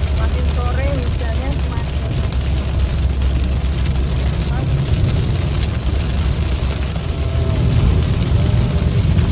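Windshield wipers sweep across the glass.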